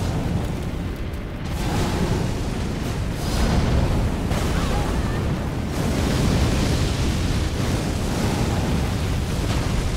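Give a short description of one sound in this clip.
A sword clashes and slashes.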